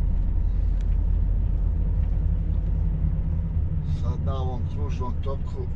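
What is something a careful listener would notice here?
A truck engine rumbles low and steady from inside the cab.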